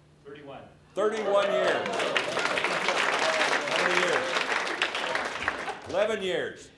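A crowd of people applauds and cheers in a large room.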